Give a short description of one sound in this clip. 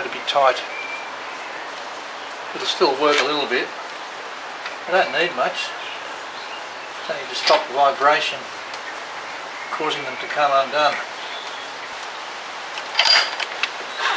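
A man talks calmly nearby in short phrases.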